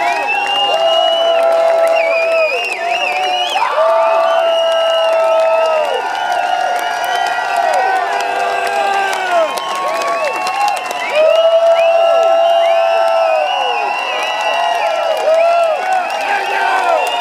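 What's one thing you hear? A large outdoor crowd cheers and screams loudly.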